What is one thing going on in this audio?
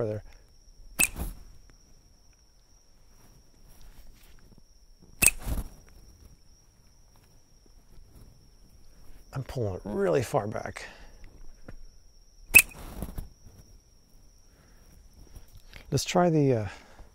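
A rubber band snaps as a toy is launched into the air.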